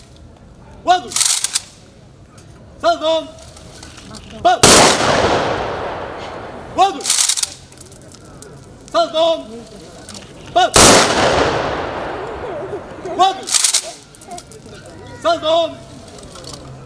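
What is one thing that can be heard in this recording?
A man shouts short commands outdoors.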